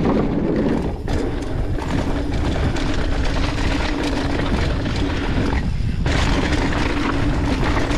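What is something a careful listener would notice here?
Mountain bike tyres roll and crunch on a dirt trail.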